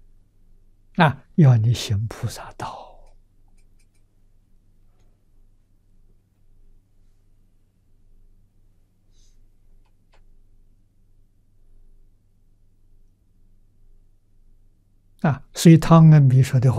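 An elderly man speaks calmly and warmly into a close microphone, with long pauses.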